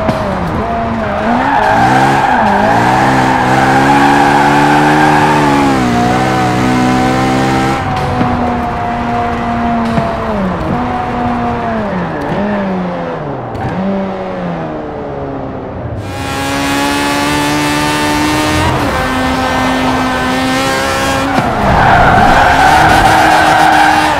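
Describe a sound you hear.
A sports car engine roars, revving up and dropping in pitch with each gear change.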